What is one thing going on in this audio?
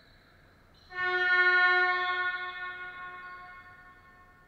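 A referee's whistle blows once, loud and ringing in a large echoing hall.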